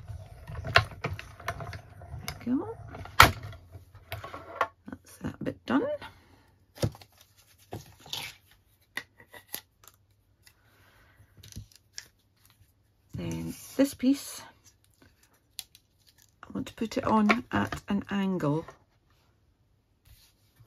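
Plastic plates clack and tap as hands handle them.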